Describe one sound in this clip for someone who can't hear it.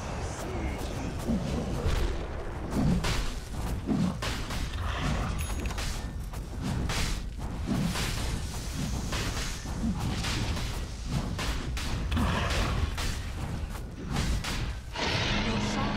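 Weapon strikes and spell blasts crack and thud in a game battle.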